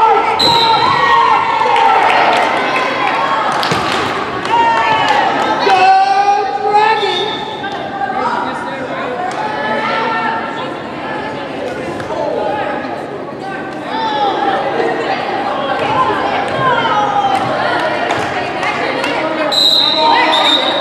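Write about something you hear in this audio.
A volleyball thuds as it is hit.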